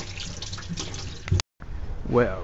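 Water runs from a tap over hands.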